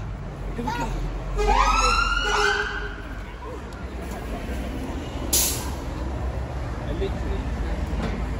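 A busy street hums with passing people and traffic outdoors.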